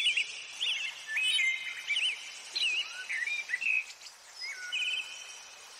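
Small birds chirp and whistle in quick bursts.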